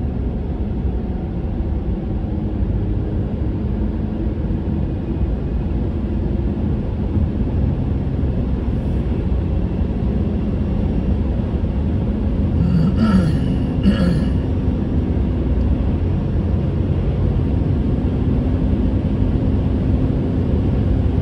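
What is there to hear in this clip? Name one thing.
A car's engine and tyres rumble steadily on the road, heard from inside the car.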